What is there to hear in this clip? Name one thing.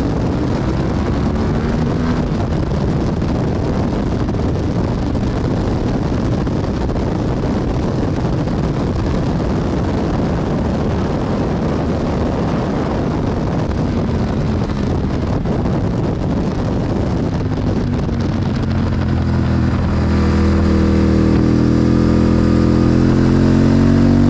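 A motorcycle engine roars at high speed and rises in pitch as it accelerates.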